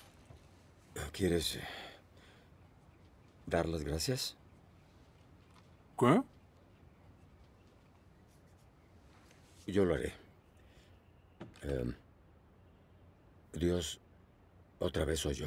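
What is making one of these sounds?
A man speaks quietly and slowly.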